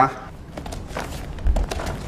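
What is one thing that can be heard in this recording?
Bare feet thump and shuffle on a mat.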